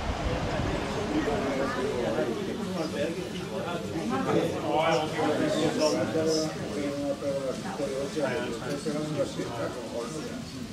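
Several men chat casually nearby.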